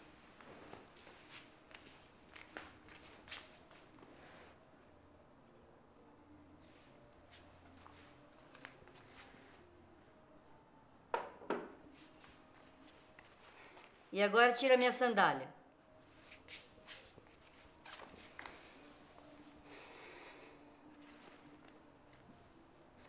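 Footsteps pad across a hard floor.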